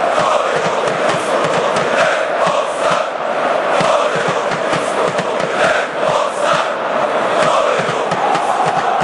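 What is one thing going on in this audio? A large stadium crowd chants loudly in unison, echoing under the roof.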